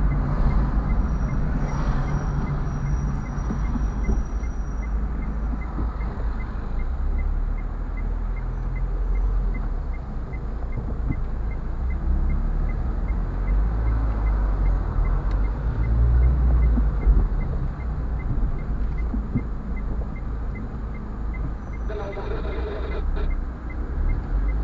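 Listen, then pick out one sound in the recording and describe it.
A car engine rumbles low and steady from inside the car.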